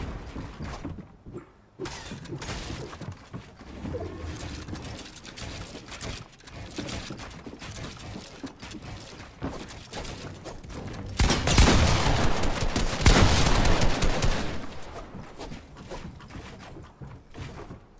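Wooden walls snap into place with rapid clattering knocks.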